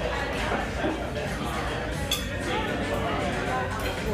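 A spoon clinks against a dish.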